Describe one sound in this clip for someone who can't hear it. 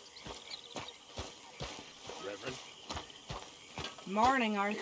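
Footsteps crunch steadily on soft ground.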